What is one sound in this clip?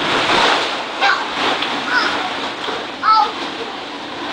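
A small child squeals.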